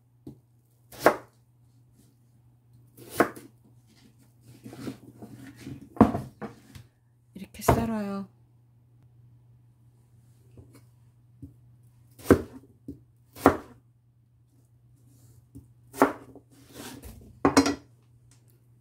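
A knife chops through soft vegetable and taps on a plastic cutting board.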